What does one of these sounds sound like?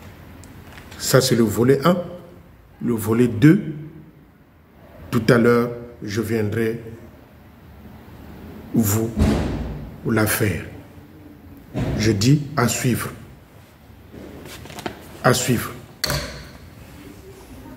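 A middle-aged man talks with animation into a headset microphone, close by.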